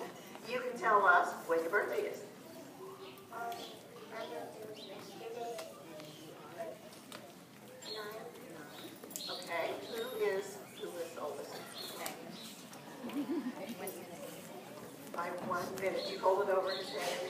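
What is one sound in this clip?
A woman speaks to a gathered crowd outdoors.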